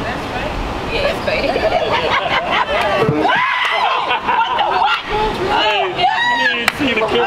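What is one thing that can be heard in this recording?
Several adults laugh and shout excitedly.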